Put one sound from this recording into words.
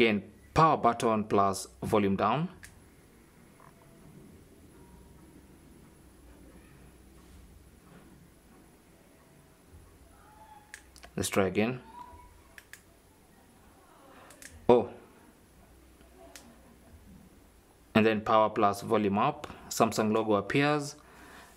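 Fingers press the side buttons of a mobile phone with soft clicks.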